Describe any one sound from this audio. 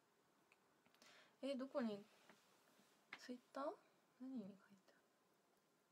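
A young woman speaks softly and briefly, close to a microphone.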